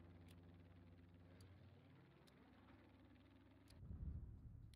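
A propeller plane engine drones steadily.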